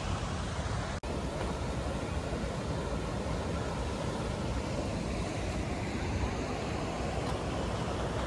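A river rushes and splashes over stones nearby.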